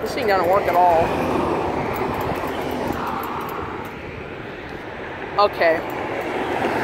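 A crosswalk signal chirps in short electronic bursts nearby.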